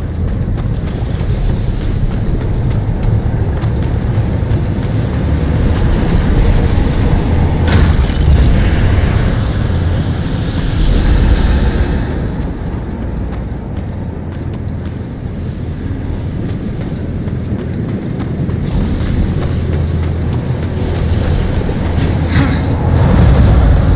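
Fire roars and rumbles low and steadily.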